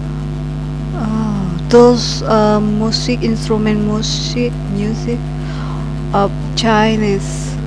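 A young woman speaks with animation, close to a headset microphone.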